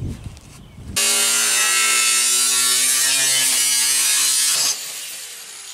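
An angle grinder whines loudly as it cuts through metal.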